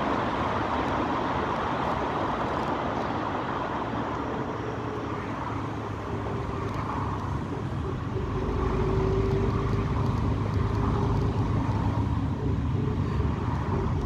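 Tyres roll on the road with a steady rushing noise.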